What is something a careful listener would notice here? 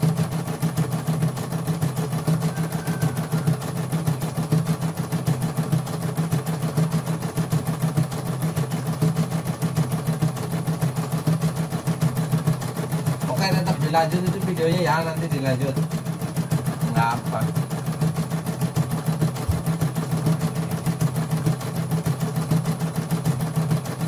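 An embroidery machine stitches with a fast, steady, rhythmic whirring and tapping.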